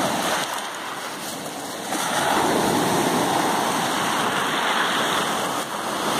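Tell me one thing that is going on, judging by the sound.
Water drains back through rattling pebbles.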